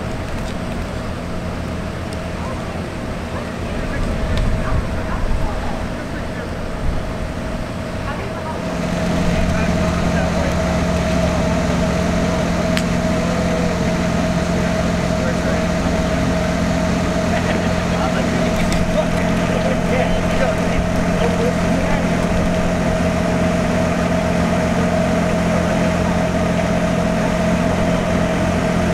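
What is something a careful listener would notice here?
A parked train car hums steadily.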